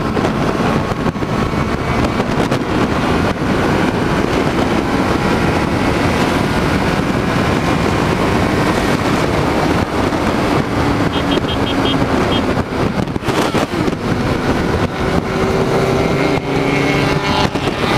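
Wind roars loudly and steadily past a fast-moving motorcycle.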